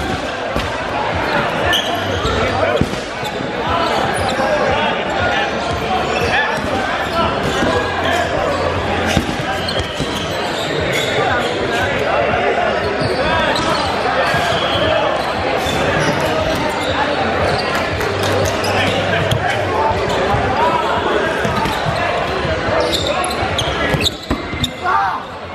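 Rubber dodgeballs bounce and smack on a hardwood floor in an echoing gym.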